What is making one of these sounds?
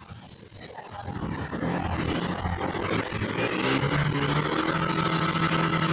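A motorcycle engine starts and idles loudly nearby.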